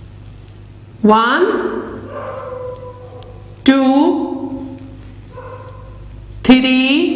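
A woman speaks slowly and clearly, close by.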